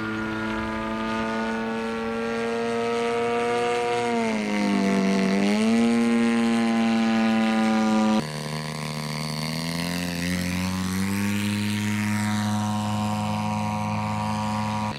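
A model airplane engine buzzes loudly overhead, its pitch dipping and rising as it flies past.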